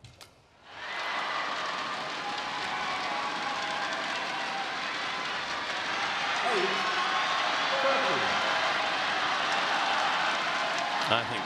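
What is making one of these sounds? A large crowd murmurs and cheers.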